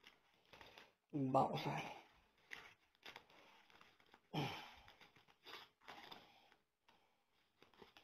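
A paper envelope rustles and tears open.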